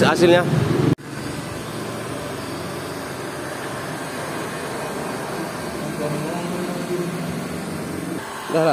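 A heat gun blows with a steady whirring hum.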